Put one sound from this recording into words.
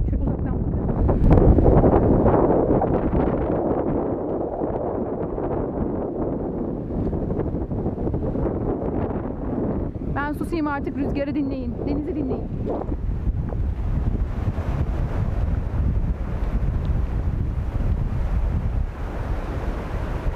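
Waves wash and break on a pebbly shore nearby.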